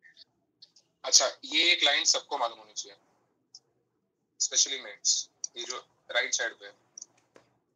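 A man speaks over an online call.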